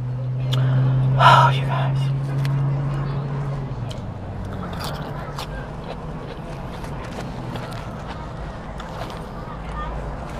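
Paper wrapping crinkles.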